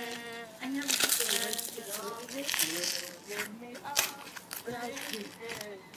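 Soft slime squishes and crackles under fingers.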